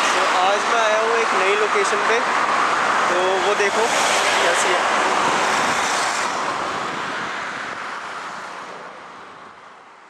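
Traffic rushes past on a road nearby, then fades away.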